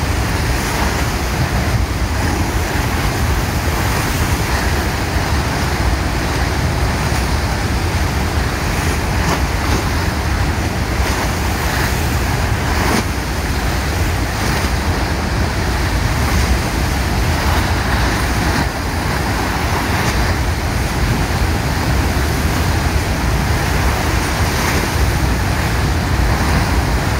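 Water gushes and roars loudly from a dam outlet.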